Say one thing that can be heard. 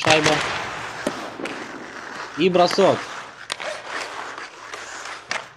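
A puck clacks sharply off hockey sticks.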